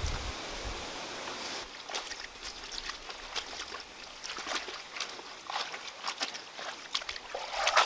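Water splashes as leaves are washed in a shallow stream.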